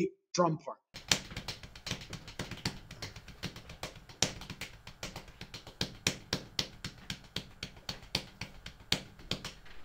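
A drummer plays a drum kit in a steady beat with crisp cymbal hits.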